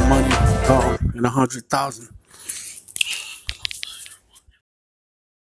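A man's voice sings over music through a microphone.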